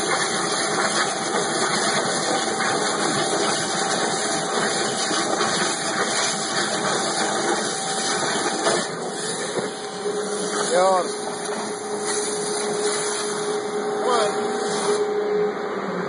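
A cutting machine hisses and roars steadily nearby.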